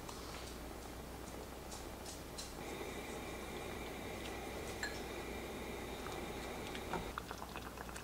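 Syrup pours into a pot in a thin stream.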